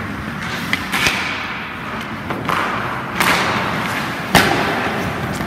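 A hockey puck cracks off a stick.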